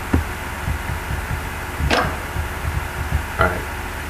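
A metal coin clicks into place in a slot.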